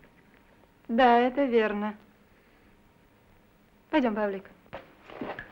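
A woman speaks calmly and clearly.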